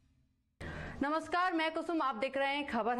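A woman speaks clearly and steadily into a microphone, close by.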